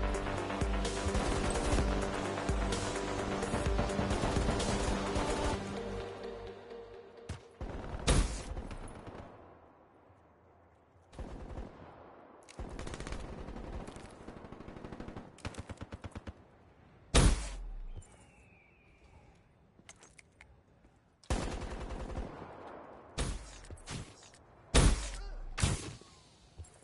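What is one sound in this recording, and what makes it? Gunshots crack in short bursts, close by.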